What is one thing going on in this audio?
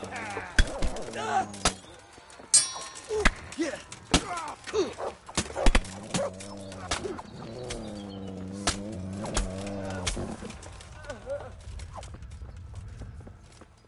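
Men shout and grunt while fighting.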